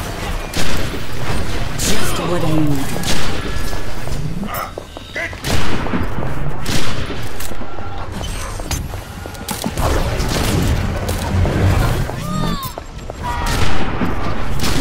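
A sniper rifle fires loud sharp shots.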